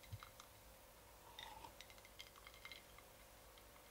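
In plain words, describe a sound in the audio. A woman sips and swallows from a glass.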